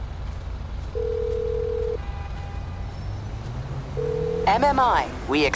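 A phone ringing tone sounds through an earpiece.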